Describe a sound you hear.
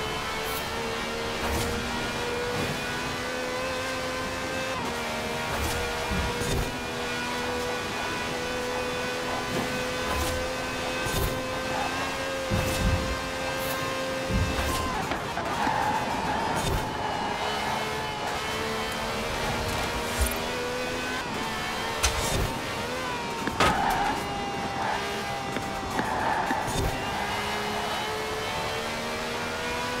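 A racing car engine roars at high revs, shifting gears as it speeds and slows.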